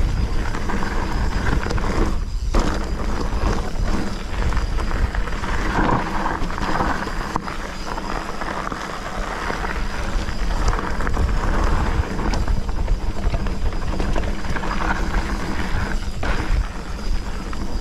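Bicycle tyres crunch and rattle over a gravel trail.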